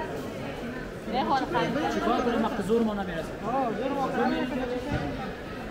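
A man speaks nearby in a conversational tone.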